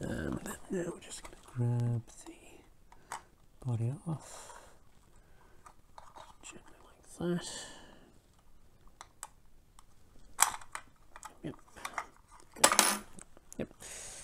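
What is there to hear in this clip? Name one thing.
Small plastic parts click and snap as they are pried apart.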